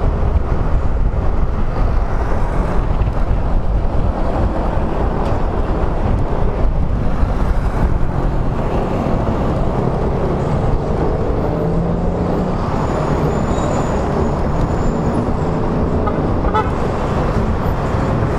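Traffic rumbles by on a busy road.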